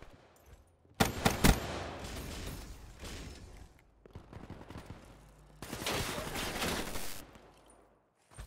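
Rapid gunfire rings out in short bursts.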